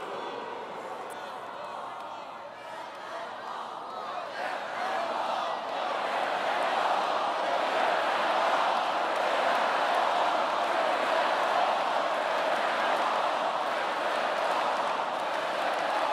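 A large crowd cheers and applauds in a big echoing hall, growing louder.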